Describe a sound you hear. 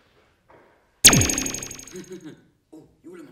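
A small firecracker goes off with a sharp bang and a short ringing tail.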